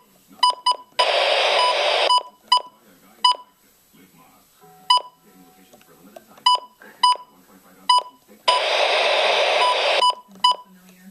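Radio static hisses in loud steady bursts.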